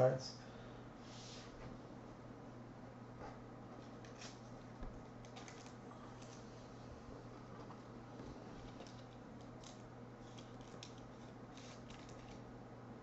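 Trading cards rustle and click as hands sort through them.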